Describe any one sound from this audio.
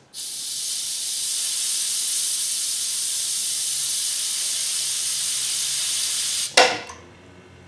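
Compressed air hisses steadily from a valve, then cuts off abruptly.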